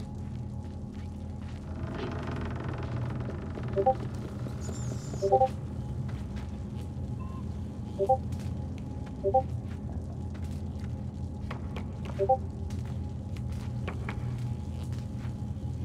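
Light footsteps patter across wooden floorboards.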